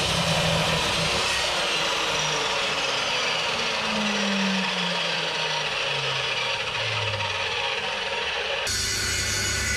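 A power saw whines loudly and its blade slowly winds down.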